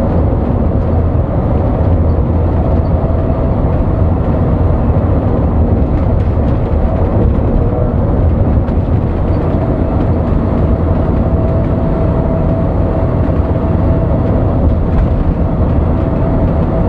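A bus engine drones steadily and low from inside the cab.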